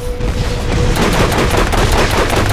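A mounted gun fires in rapid bursts.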